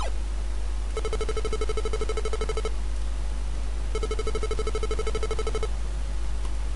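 Rapid electronic beeps tick as a video game score counts up.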